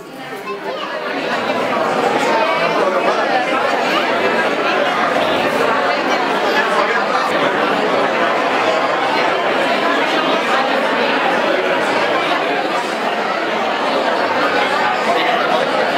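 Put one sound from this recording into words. A crowd of men and women chatters loudly in an echoing room.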